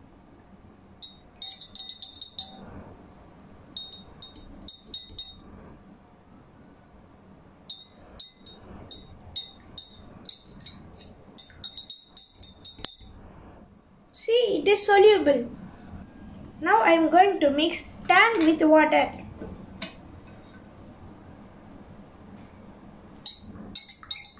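A metal spoon stirs and clinks in a glass of water.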